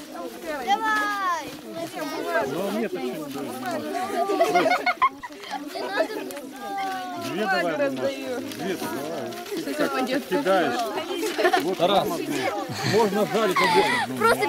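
A group of women and children sing together outdoors.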